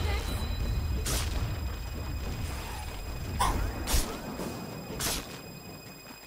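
Magic spells burst and whoosh in quick blasts.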